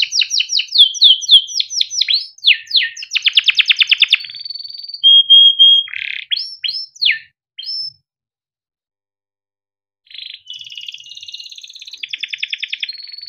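A canary sings loudly and close by in fast trills and chirps, pausing briefly before singing again.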